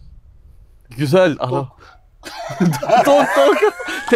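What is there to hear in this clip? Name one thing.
A second man answers with animation up close.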